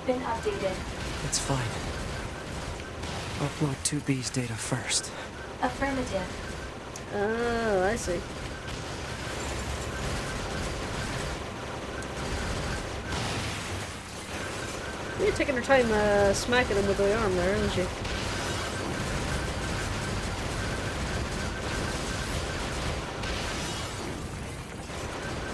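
Gunfire crackles steadily in a video game.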